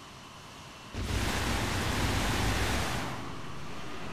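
Jet thrusters roar loudly as they blast dust off the ground.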